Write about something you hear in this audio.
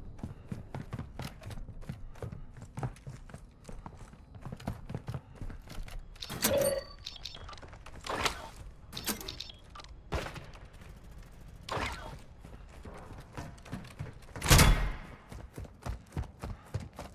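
Footsteps thud steadily across hard floors.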